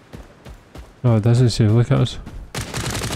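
A man speaks loudly and with animation close to a microphone.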